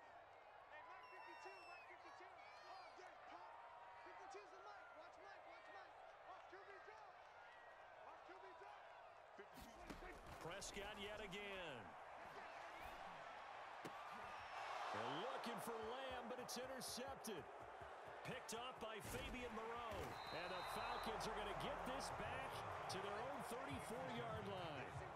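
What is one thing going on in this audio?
A large stadium crowd roars and cheers, growing louder as a play unfolds.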